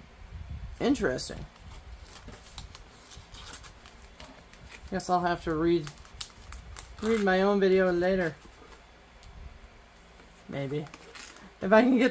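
A plastic sleeve crinkles and rustles as paper slides into it.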